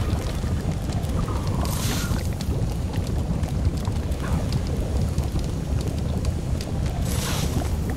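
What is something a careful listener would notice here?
Torch flames crackle steadily.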